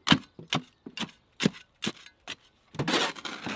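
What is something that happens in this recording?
A spade chops and scrapes through lumpy soil in a metal wheelbarrow.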